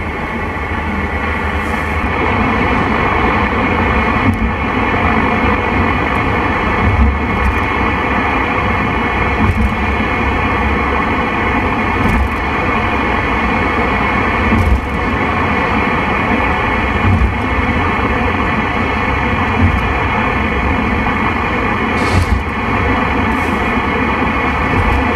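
A radio hisses and crackles with loud static.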